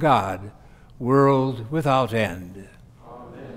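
A man chants slowly in an echoing room.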